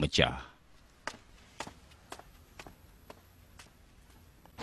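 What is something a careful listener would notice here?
Footsteps tap on a hard floor as a man walks away.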